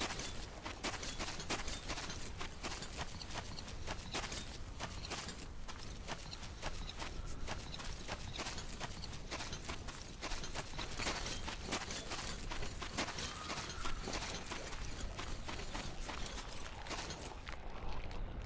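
Footsteps crunch steadily on sand and gravel.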